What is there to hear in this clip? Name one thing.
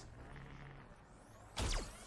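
A weapon fires with loud bursts.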